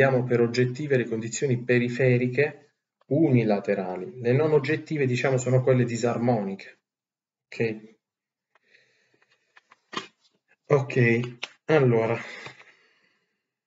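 A young man speaks calmly close to a microphone.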